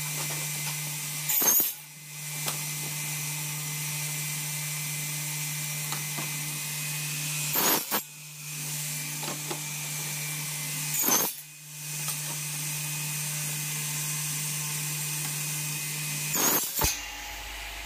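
A power saw motor hums steadily.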